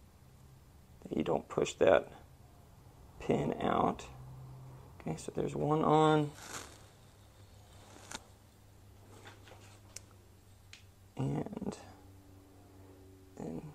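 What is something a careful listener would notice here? Small metal parts click softly against each other.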